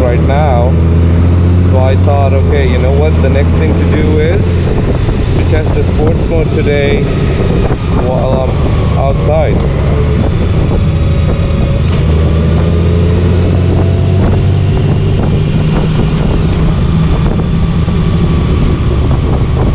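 A flat-six Honda Gold Wing touring motorcycle engine hums while cruising.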